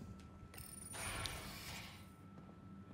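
A sliding door hisses open.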